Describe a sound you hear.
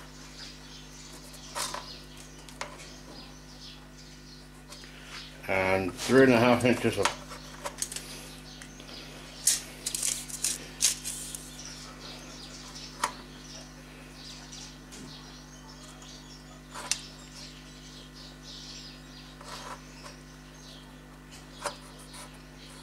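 A marker squeaks as it marks sheet metal.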